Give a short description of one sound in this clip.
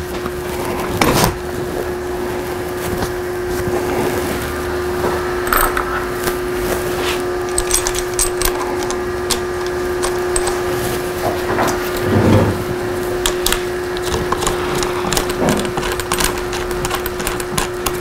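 Metal bicycle parts click and rattle as hands adjust them.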